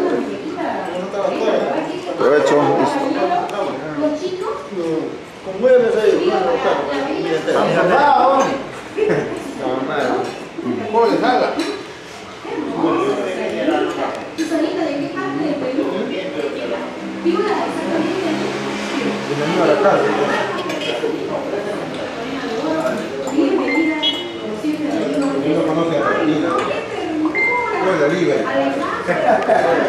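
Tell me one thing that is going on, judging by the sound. Several men talk and chat at once around a table, close by.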